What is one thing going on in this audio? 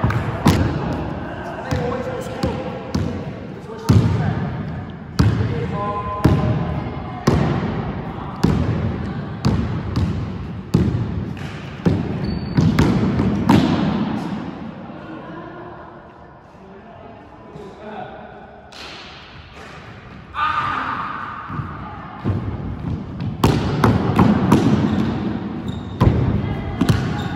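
A basketball bounces hard on a wooden floor, echoing in a large hall.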